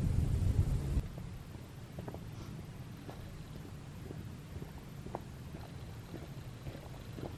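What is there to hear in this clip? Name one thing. Footsteps crunch on a gravel path, coming closer.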